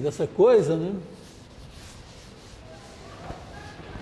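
A felt eraser rubs across a chalkboard.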